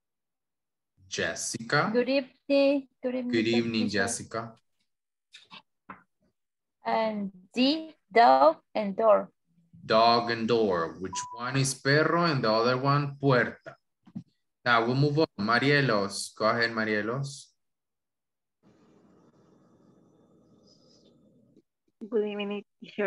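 A woman speaks clearly and slowly through an online call, as if teaching.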